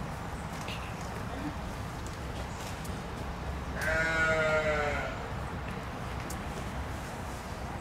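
A wombat munches on grass with soft crunching bites.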